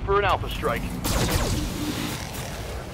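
Lasers fire with loud zapping blasts.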